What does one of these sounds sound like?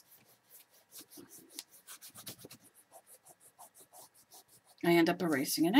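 An eraser rubs briskly back and forth on paper.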